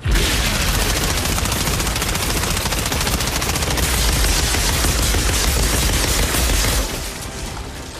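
A rapid-fire energy gun blasts in quick bursts.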